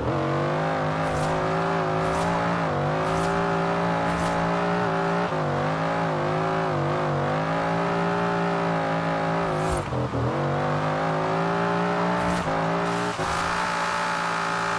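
Tyres squeal on the road during a drift.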